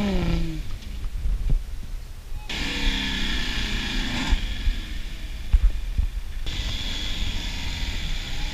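A truck engine revs hard and strains.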